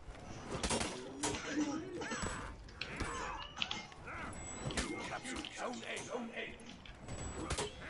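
Swords clash and strike in a game.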